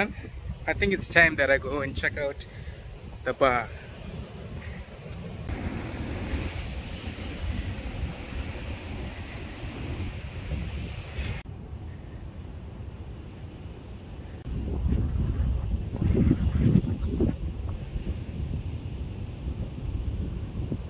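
Wind blows outdoors, rumbling.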